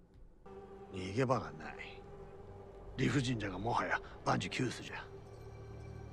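A man speaks in a low, calm voice, heard through a loudspeaker.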